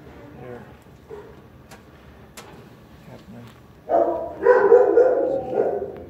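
A dog's claws click and patter on a hard floor.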